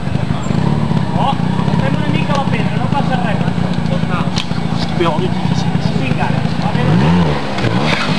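A trials motorbike engine revs and putters close by.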